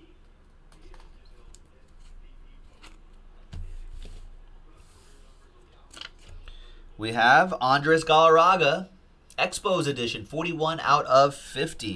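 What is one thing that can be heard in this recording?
Plastic card holders click and rustle in hands.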